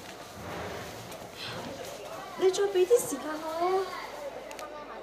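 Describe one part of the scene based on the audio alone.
A young woman sobs and speaks tearfully into a phone, close by.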